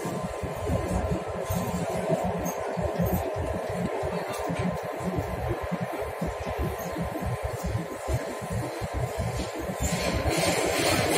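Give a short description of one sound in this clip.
A subway train rumbles and rattles steadily along the track.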